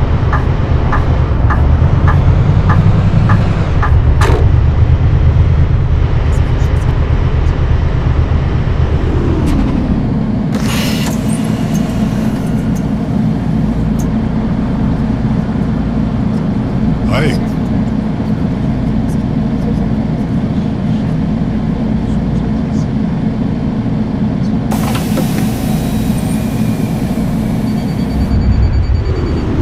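A bus engine rumbles, then settles to a lower idle.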